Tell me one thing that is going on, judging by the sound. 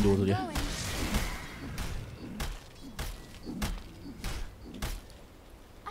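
Sharp game effects click and strike during combat.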